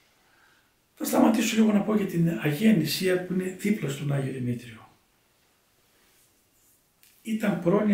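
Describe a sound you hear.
An elderly man speaks calmly and slowly into a close microphone, with pauses.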